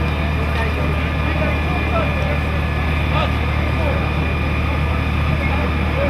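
A fire engine's motor idles with a steady low rumble.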